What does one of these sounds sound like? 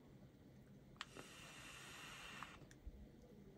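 A tablet's speaker plays a brief hissing game effect.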